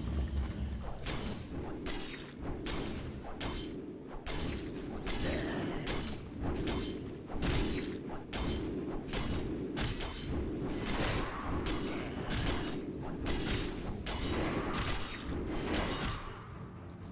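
Weapons strike again and again in a rapid fight.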